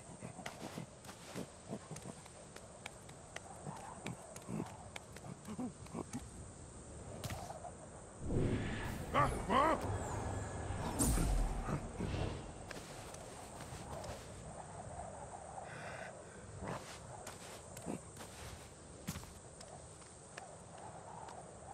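Bare feet pad across dry dirt.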